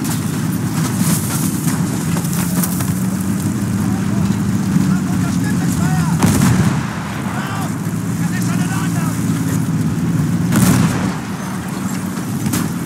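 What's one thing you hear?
Brick walls crash and crumble as a tank smashes through them.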